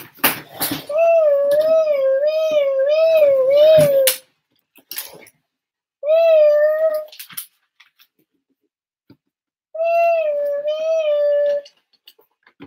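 A toy fire truck siren wails in bursts.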